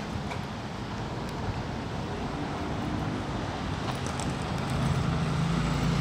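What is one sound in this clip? Cars drive past on a nearby street.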